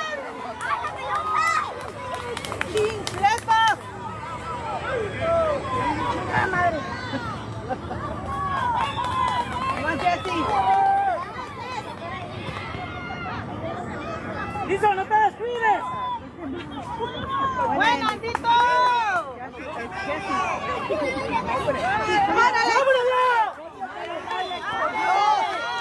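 Young men shout and call to each other across an open field outdoors.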